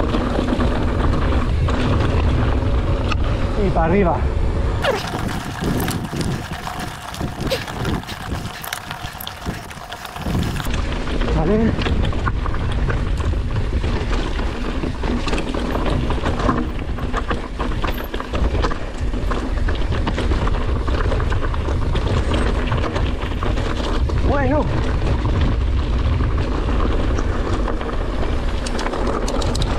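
Bicycle tyres crunch and rattle over loose gravel and stones.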